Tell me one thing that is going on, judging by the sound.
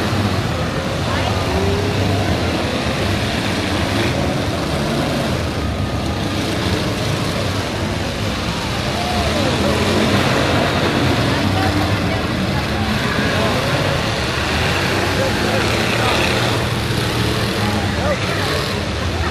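Car engines roar and rev outdoors.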